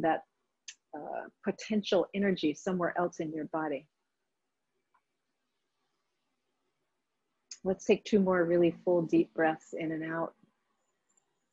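A woman speaks calmly and clearly, close to a microphone, with pauses.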